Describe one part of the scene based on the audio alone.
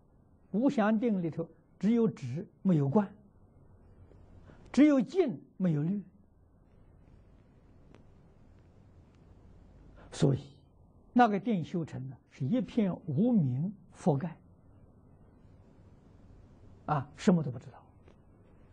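An elderly man speaks calmly and slowly into a close microphone, with long pauses.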